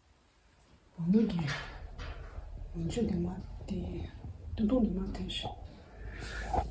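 A young woman speaks quietly and casually close by.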